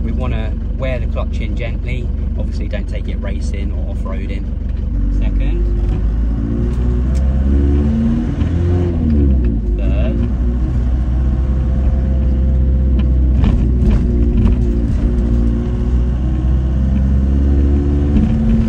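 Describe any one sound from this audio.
A van engine rumbles steadily while driving.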